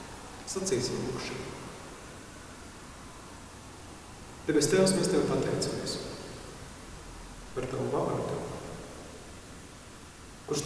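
A man speaks calmly in short phrases, his voice echoing in a large hall.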